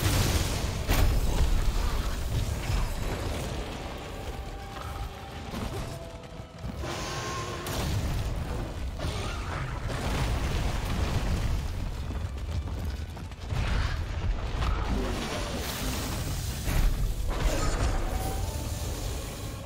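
Blades clash and strike with sharp metallic hits.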